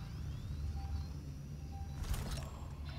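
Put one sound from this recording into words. A motion tracker beeps softly at a steady pace.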